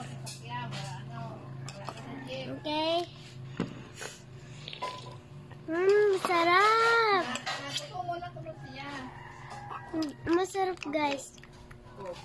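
A young girl speaks playfully, close by.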